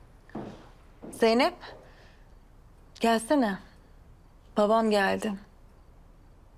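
A young woman speaks tensely up close.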